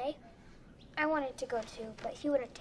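A young girl speaks quietly and close by.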